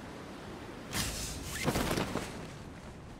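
A parachute snaps open with a loud flapping burst.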